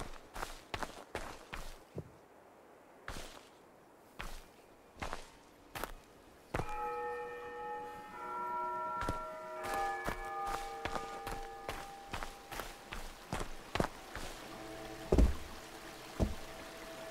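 Footsteps tread steadily over grass and wooden boards.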